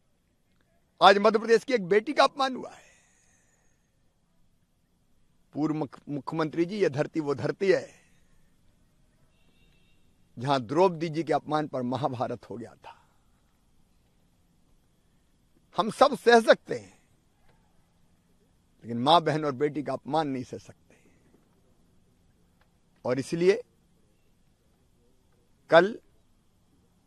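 A middle-aged man speaks calmly into a microphone close by, in short bursts with pauses.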